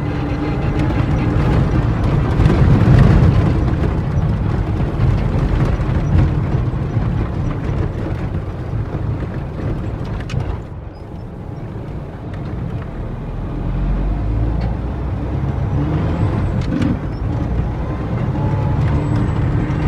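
A vehicle's body rattles and knocks over bumps.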